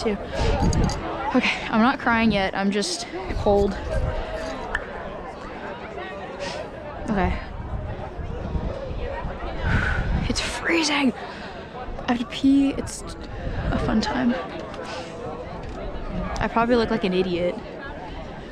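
A young person talks with animation close by.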